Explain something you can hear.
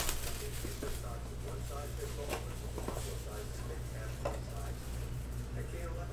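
Plastic wrapping crinkles as a box is opened.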